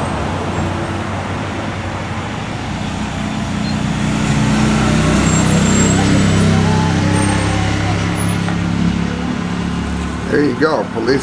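A car engine rumbles as a car drives past close by.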